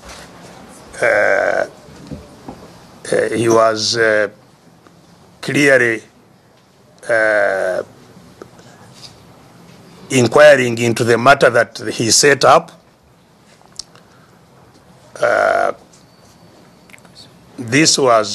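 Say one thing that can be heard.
An elderly man speaks slowly in short bursts with pauses, heard through a microphone.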